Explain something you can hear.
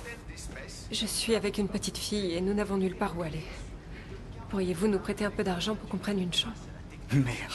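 A young woman speaks softly and pleadingly, close by.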